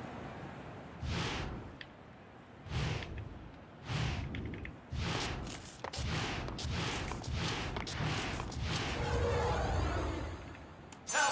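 A hammer whooshes as it swings round and round.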